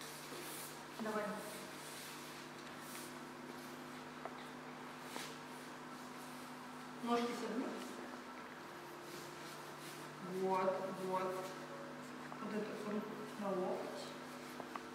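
A young woman gives calm instructions in short phrases.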